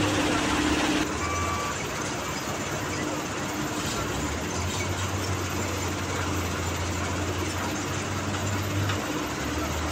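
Gravel pours off a conveyor and rattles onto a pile.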